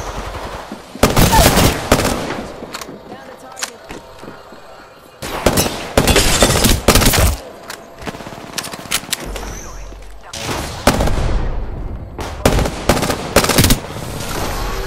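Guns fire in loud rapid bursts.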